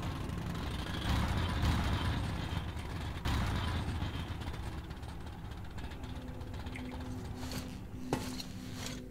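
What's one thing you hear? A rail cart rumbles and clatters along metal tracks.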